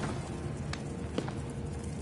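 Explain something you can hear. A small wood fire crackles and pops.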